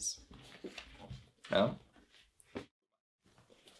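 A shoe rustles and taps as it is handled.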